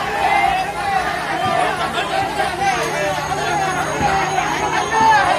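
A crowd of men shouts and chants loudly outdoors.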